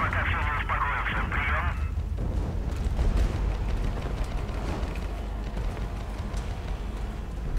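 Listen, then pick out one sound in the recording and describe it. Footsteps pound quickly on a rooftop.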